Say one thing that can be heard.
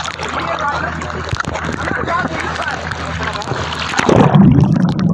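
Water splashes and laps close by at the surface.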